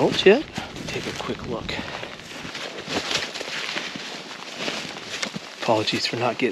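Footsteps crunch through snow and dry brush.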